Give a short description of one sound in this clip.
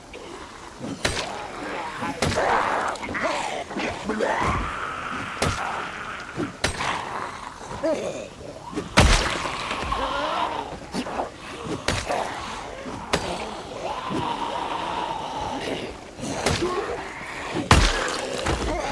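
Heavy blows thud one after another, at uneven intervals.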